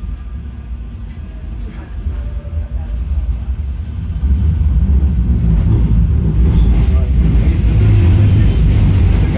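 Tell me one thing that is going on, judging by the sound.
A tram rumbles steadily along its tracks, growing louder partway through.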